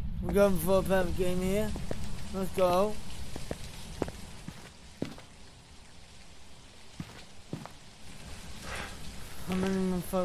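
Rain falls outdoors.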